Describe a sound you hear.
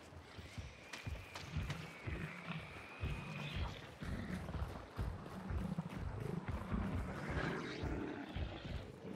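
Footsteps crunch over dry grass and dirt.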